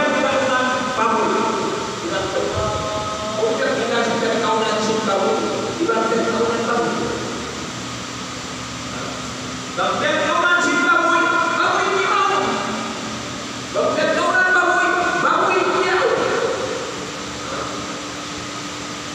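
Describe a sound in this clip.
A middle-aged man speaks calmly into a microphone in an echoing room.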